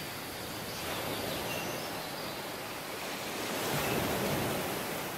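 Waves wash steadily onto the shore outdoors.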